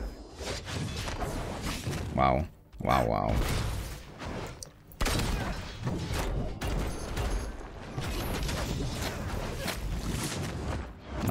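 Punches and blows land with sharp impacts.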